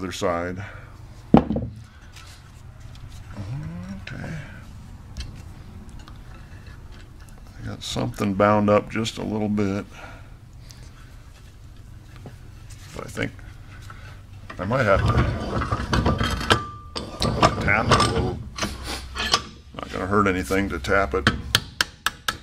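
A man speaks calmly and close by, explaining.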